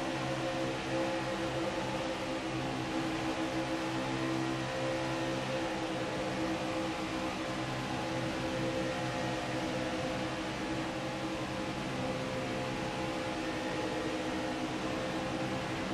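A racing truck engine roars steadily at high speed.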